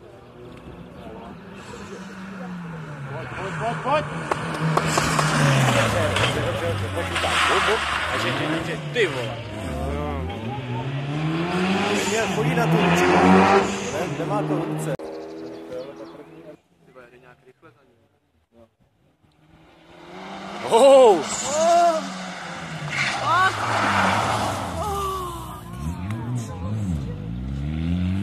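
A racing car engine roars and revs up and down as it speeds past.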